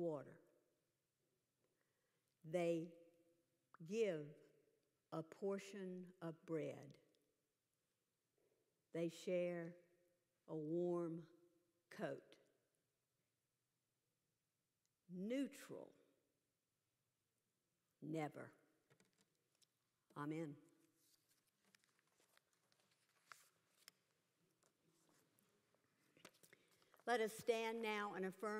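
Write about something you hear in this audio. A woman speaks slowly and calmly through a microphone in a large echoing room, with long pauses.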